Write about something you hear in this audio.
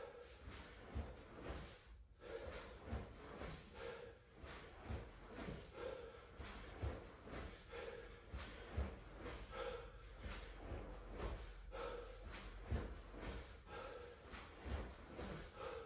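Dull thumps land on a mat at a steady, slow beat.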